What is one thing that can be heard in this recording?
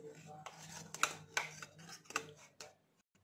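A metal spoon clinks and scrapes against a metal bowl.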